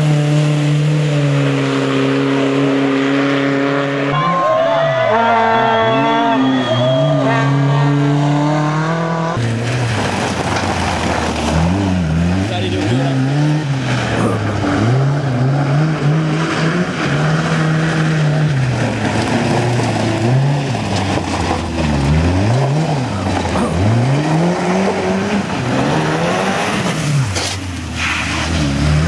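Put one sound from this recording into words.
A rally car engine roars and revs hard, rising and falling in pitch.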